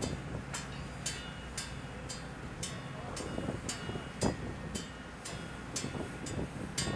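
Water splashes against a ship's hull below.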